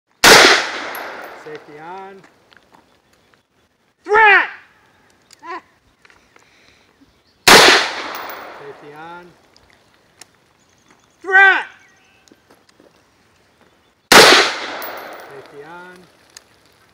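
A rifle fires loud single shots outdoors, each bang rolling away in an echo.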